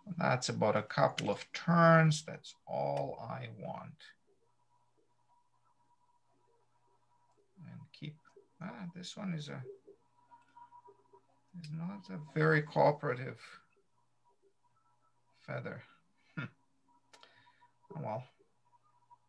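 A middle-aged man talks calmly over an online call, in short bursts.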